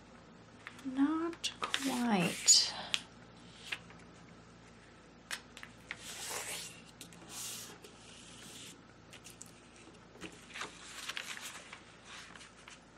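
Paper rustles and slides across a hard surface.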